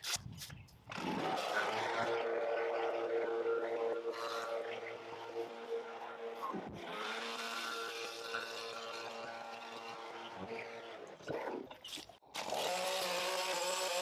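A leaf blower engine roars steadily close by.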